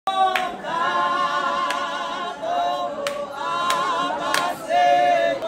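A large choir of men and women sings together in harmony, close by.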